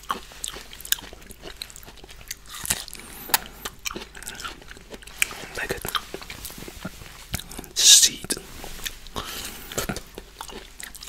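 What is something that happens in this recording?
A man chews fruit loudly and wetly close to a microphone.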